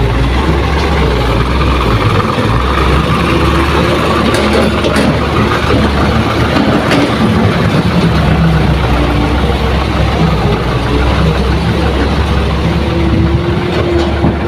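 Diesel truck engines rumble and idle nearby.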